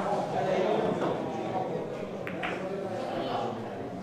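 A cue strikes a billiard ball and the balls click together.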